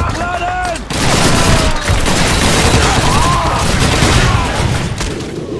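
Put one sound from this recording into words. Rifles fire in close bursts of gunfire.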